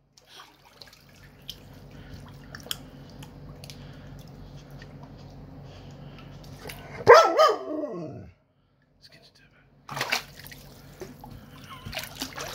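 Water churns and bubbles in a tub.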